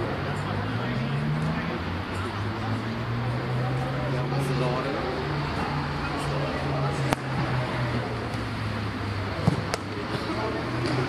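Young men talk and call out at a distance outdoors.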